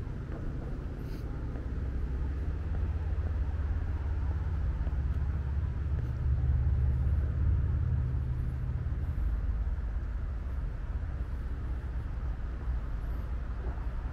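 Wind rumbles and buffets outdoors, loud and close.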